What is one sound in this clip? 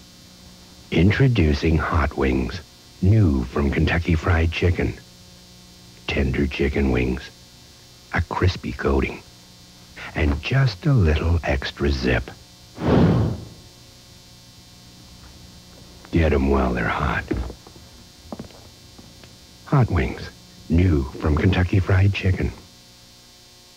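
A young man speaks with animation, close to the microphone.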